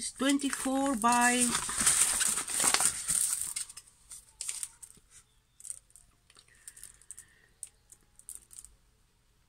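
Plastic sheeting crinkles and rustles as it is handled.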